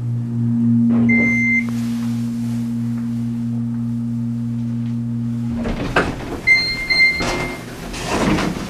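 An elevator chime dings.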